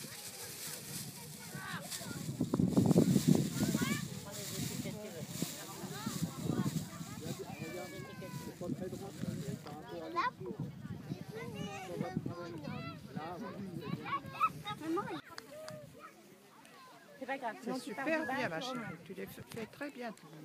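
Young children chatter and call out nearby outdoors.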